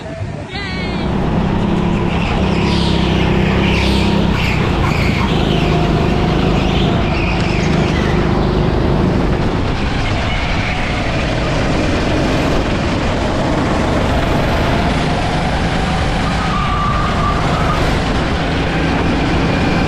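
Racing kart engines buzz at speed on a track.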